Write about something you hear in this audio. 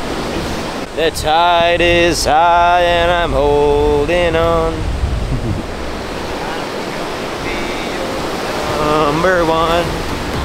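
A young man talks with animation close to the microphone.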